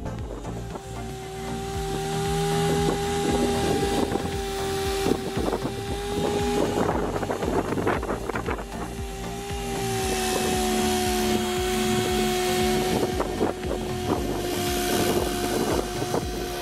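A power polisher whirs steadily against a metal panel.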